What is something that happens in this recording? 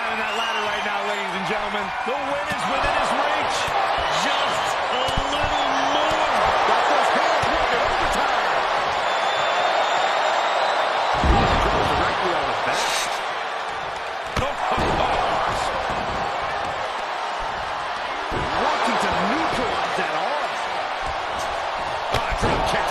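A large crowd cheers and roars loudly in an echoing arena.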